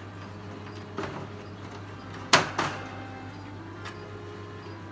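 A wire cage rattles and clanks as hands lift it off its base.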